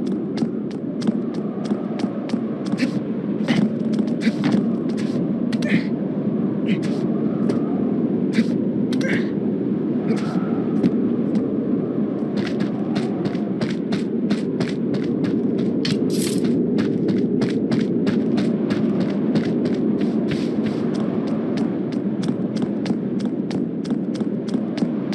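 Footsteps patter quickly across stone.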